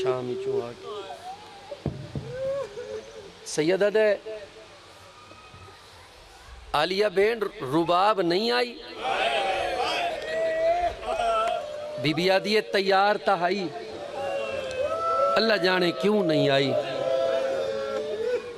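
A man sings loudly and with feeling through a microphone.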